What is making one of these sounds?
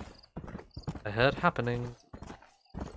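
A horse neighs loudly.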